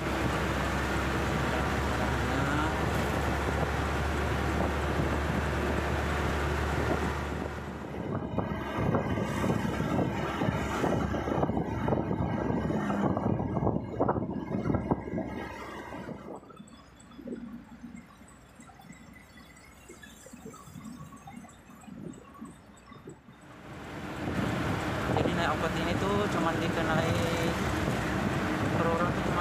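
A vehicle engine hums steadily while driving.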